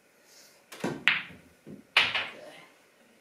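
Billiard balls clack together and knock against the table cushions.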